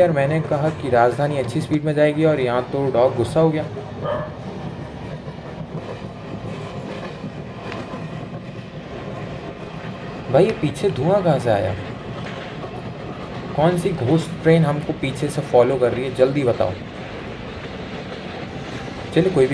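A passenger train rumbles steadily along the tracks.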